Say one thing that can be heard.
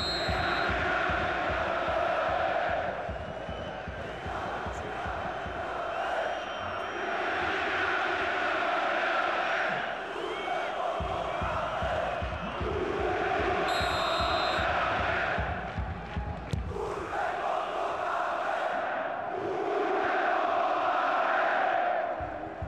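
A large stadium crowd chants and sings loudly outdoors.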